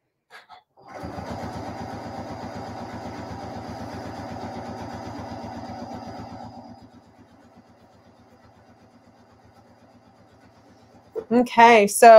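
A sewing machine stitches rapidly, then slows to a softer, slower stitching.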